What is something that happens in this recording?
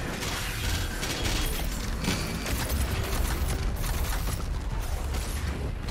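Loud guns fire in rapid bursts.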